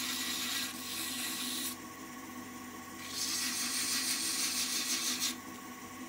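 Sandpaper rasps against spinning wood in bursts.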